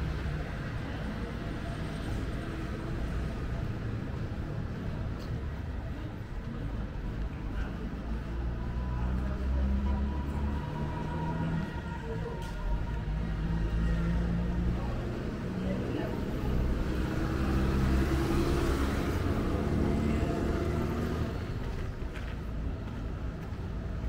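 Traffic rumbles steadily along a road outdoors.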